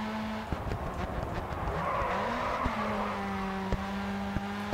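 Tyres screech as a race car slides through a corner.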